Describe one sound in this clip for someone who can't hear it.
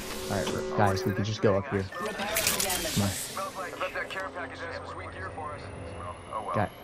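A medical kit is applied with rustling and clicking.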